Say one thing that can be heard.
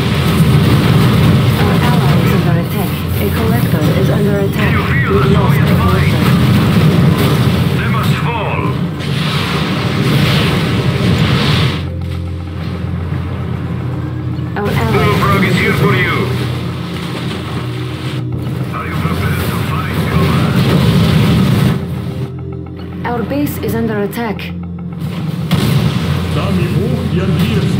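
Explosions boom and rumble in bursts.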